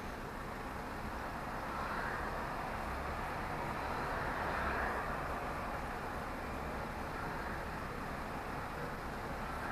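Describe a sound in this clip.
Passing cars hiss by on the road nearby.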